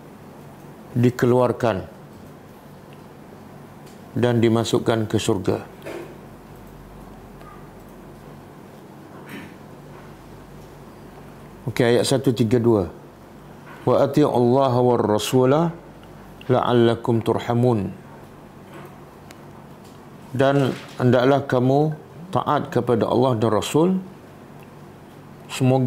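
An elderly man reads out slowly into a close microphone, in short phrases with pauses.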